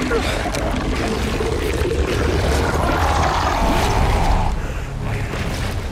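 A huge creature lets out a deep, furious bellow.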